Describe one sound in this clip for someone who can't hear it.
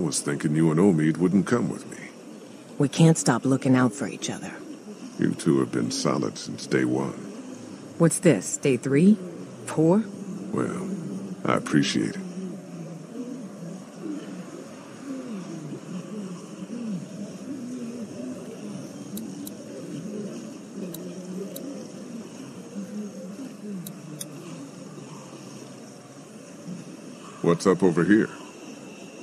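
A man speaks calmly and quietly.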